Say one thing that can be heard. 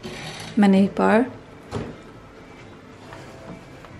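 A small fridge door opens with a soft click.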